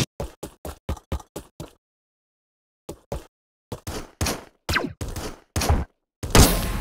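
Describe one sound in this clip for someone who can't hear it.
Quick retro game blips tick in a rapid rhythm.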